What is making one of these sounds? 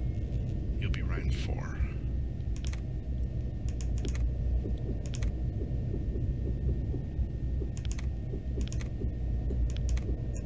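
Short interface clicks sound as menu choices are made.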